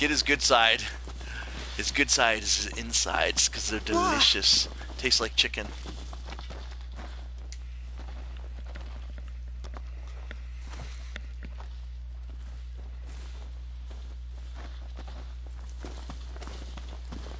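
Footsteps run through grass and undergrowth.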